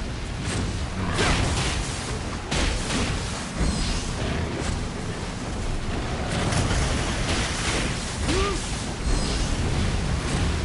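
Blades clash and strike in quick, sharp hits.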